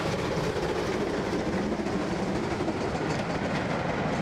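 Train carriages rattle past on the rails.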